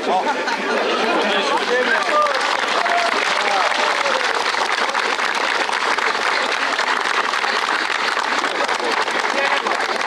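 A large crowd of men talks and calls out outdoors.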